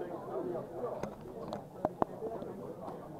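Backgammon checkers click on a board.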